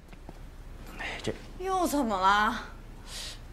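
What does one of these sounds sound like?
A woman asks a question, close by.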